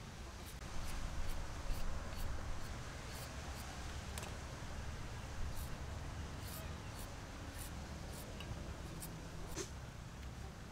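A peeler scrapes quickly along a carrot.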